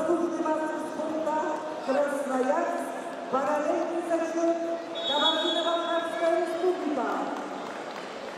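A large crowd chants loudly in an echoing hall.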